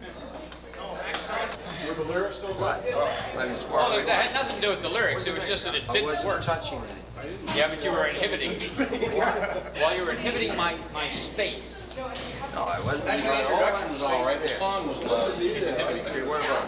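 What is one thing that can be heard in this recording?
A man talks and laughs casually nearby.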